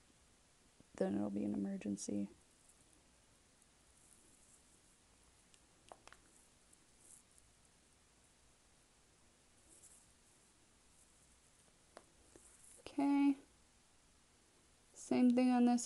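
A young woman speaks softly and close up, in short bursts.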